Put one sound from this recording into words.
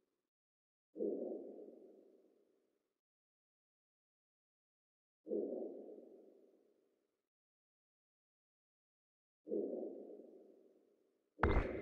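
Soft menu tones chime at intervals.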